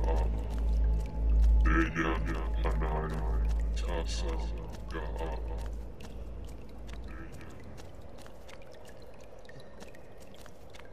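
Footsteps crunch slowly over loose stone.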